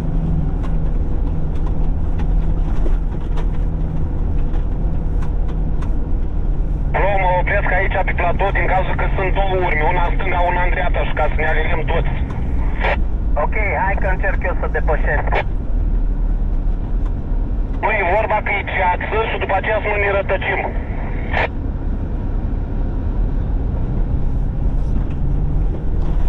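Tyres crunch over snow.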